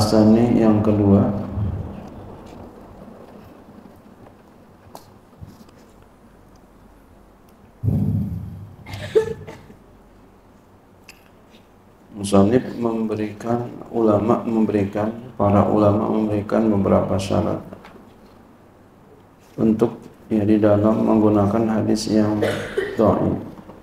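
A man speaks calmly through a microphone in an echoing hall, with pauses.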